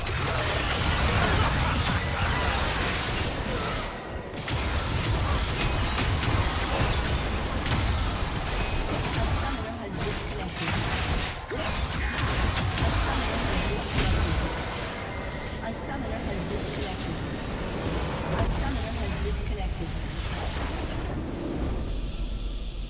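Game spell effects and attacks crackle and blast in quick succession.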